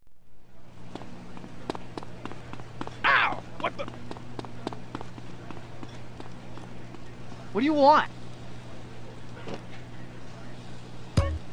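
Footsteps tap quickly and evenly on a hard floor.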